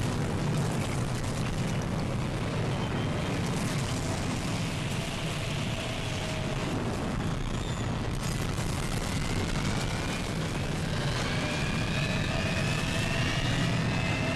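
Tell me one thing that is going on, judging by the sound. A tornado's wind roars loudly and steadily.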